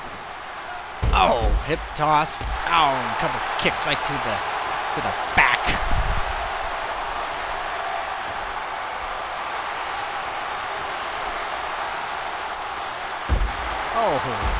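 A heavy body slams down onto a wrestling mat with a thud.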